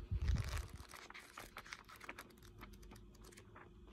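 Book pages flip and rustle.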